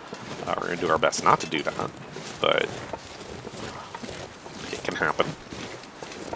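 A middle-aged man talks and laughs with animation, close to a microphone.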